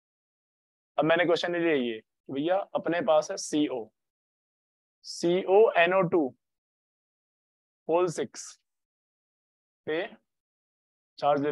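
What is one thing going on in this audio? A young man speaks calmly in short phrases, close to a microphone.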